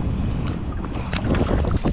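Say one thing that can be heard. A fish splashes as it is tossed into the water.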